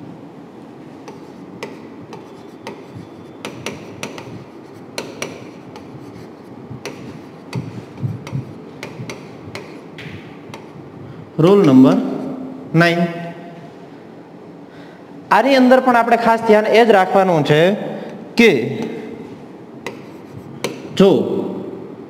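A pen taps against a board.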